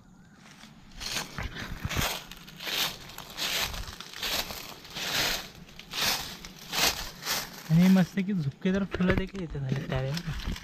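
Dry leaves crunch and rustle underfoot with each step.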